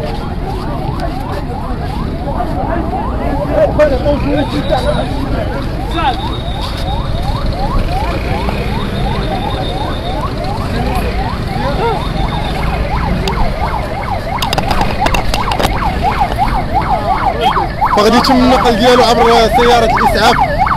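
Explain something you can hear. A crowd of men talks and shouts loudly outdoors.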